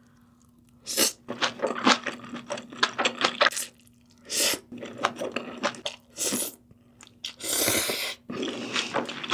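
A young woman slurps noodles loudly, close to a microphone.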